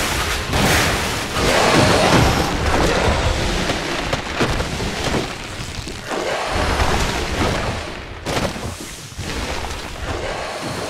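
A monstrous creature roars and shrieks.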